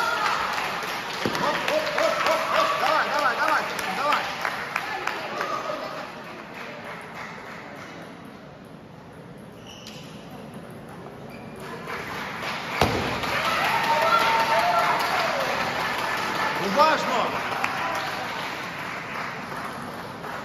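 A table tennis ball clicks back and forth on paddles and a table in a large echoing hall.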